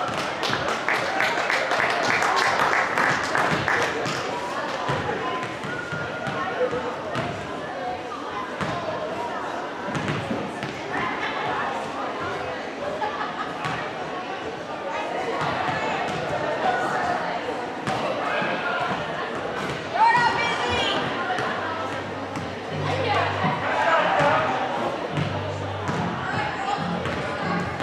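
A crowd chatters and murmurs in a large echoing gym.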